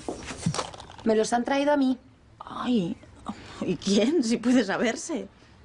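A woman speaks sharply and loudly, close by.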